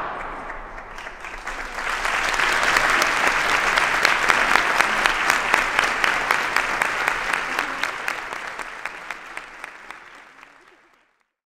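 A crowd applauds and cheers, then fades away.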